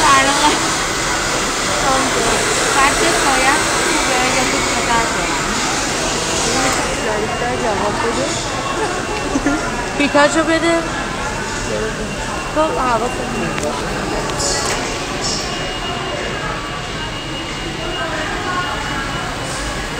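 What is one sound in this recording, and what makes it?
A broom sweeps across a hard floor.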